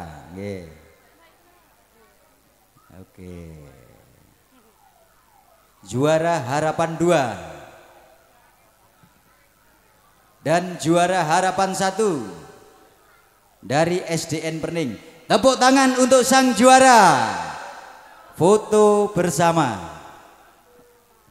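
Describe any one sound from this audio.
A man speaks loudly and with animation into a microphone, heard through loudspeakers with echo.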